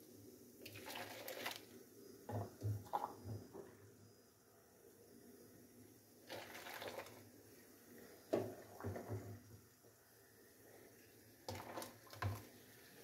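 Water pours into a plastic jug.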